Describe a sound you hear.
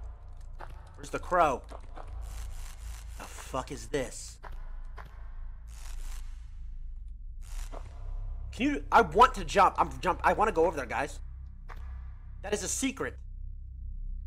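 A young man talks into a headset microphone with animation, close up.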